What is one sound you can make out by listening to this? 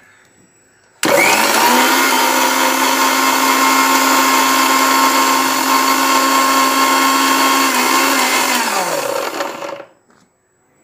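A blender motor whirs loudly and then winds down.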